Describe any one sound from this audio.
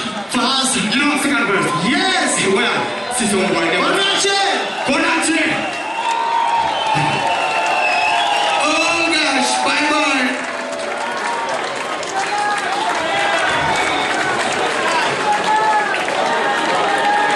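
A man sings into a microphone over the band.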